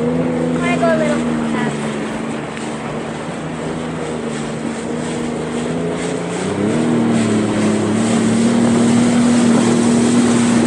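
Water splashes and rushes past a boat.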